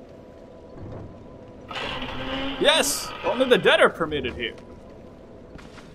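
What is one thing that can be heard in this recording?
Heavy stone doors grind slowly open.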